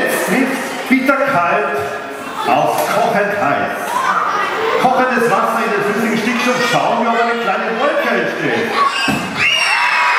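A man talks with animation through a microphone in a large hall.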